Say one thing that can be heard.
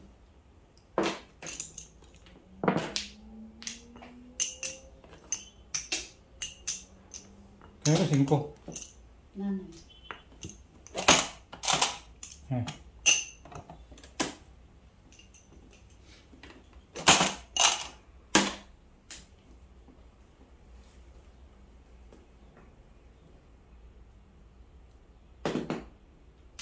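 Plastic game tiles click and clack on a table.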